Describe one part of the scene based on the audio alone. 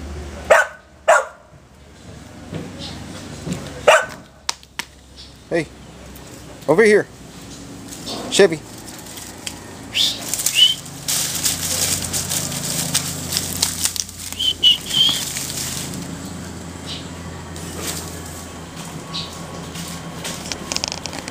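A dog rustles and scrabbles through dry leaves.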